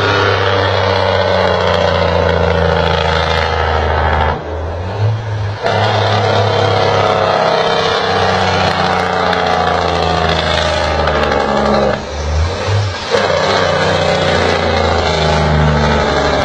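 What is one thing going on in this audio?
A heavy truck engine rumbles loudly as the truck approaches along a road.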